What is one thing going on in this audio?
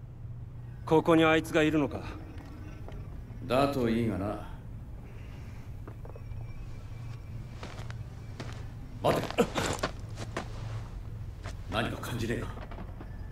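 A young man speaks quietly, in short phrases.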